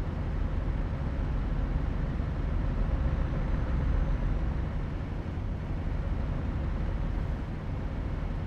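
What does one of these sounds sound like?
Tyres roll on the road with a steady hum.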